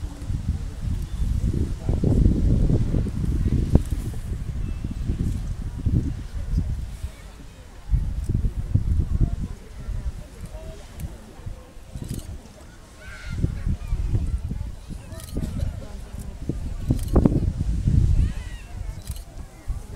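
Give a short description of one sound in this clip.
Wind gusts outdoors against the microphone.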